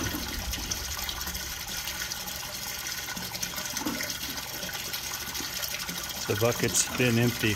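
A donkey slurps water from a bucket.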